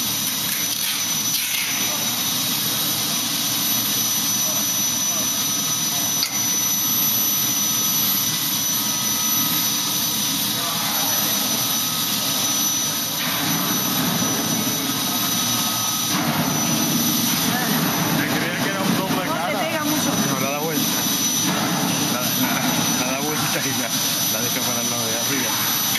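Machinery hums and rumbles steadily.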